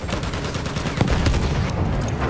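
An explosion bursts close by.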